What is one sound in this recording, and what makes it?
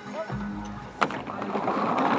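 A ski jumper pushes off from a bar with a sharp knock.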